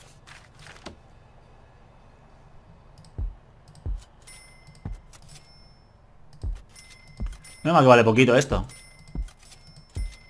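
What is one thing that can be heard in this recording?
Short soft clicks sound as items are placed.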